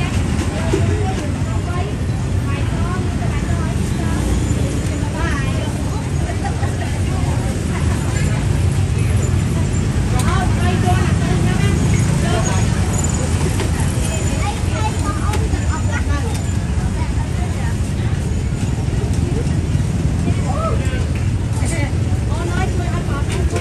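Voices of people nearby chatter.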